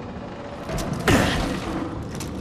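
A body lands with a heavy thud on wooden boards.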